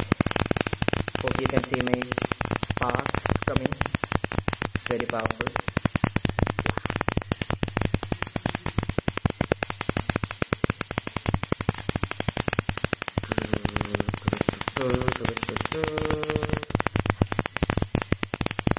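A tesla coil gives off a steady high-pitched whine.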